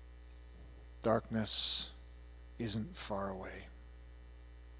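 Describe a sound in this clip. A man speaks calmly into a microphone in a large echoing hall.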